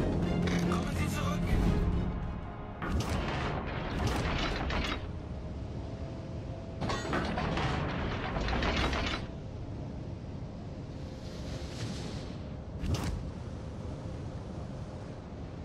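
Water rushes and splashes along the hull of a moving ship.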